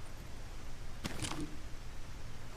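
A wooden stick knocks softly as it is picked up.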